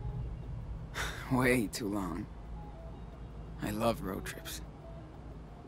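A young man speaks casually.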